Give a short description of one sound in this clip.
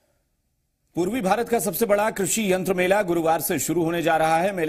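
A man speaks clearly and steadily, as if presenting news.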